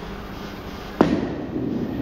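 A bowling ball thuds onto a wooden lane.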